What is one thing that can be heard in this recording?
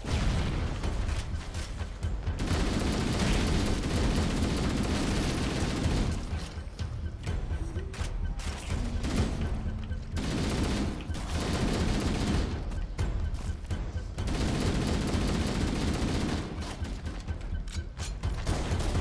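Rapid gunfire blasts in quick bursts.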